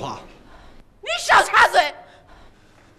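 A woman shouts angrily.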